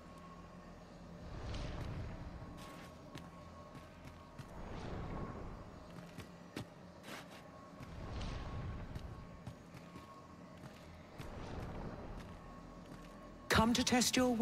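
Footsteps tap on a stone floor in an echoing room.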